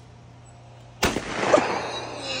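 A shotgun fires once with a loud boom that echoes outdoors.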